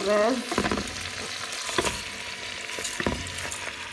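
Dry rice pours into a pan with a light rattle.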